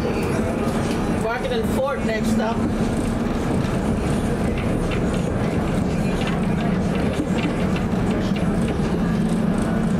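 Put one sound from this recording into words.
A vehicle hums and rumbles steadily as it rolls along.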